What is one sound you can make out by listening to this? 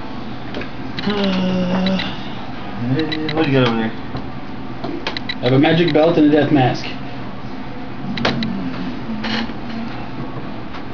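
A man speaks close by in short, animated bursts.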